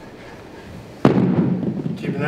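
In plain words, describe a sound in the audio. Dumbbells thud down onto a wooden floor.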